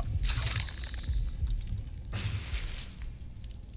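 Footsteps thud on a hard path.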